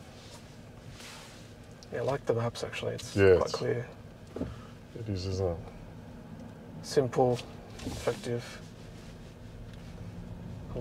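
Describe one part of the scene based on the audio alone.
A car hums quietly as it rolls along the road.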